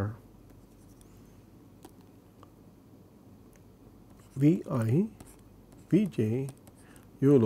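A stylus taps and scratches lightly on a tablet.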